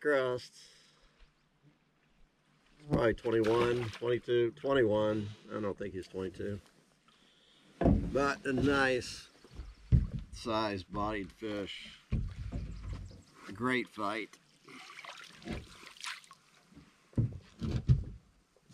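Light wind blows across open water.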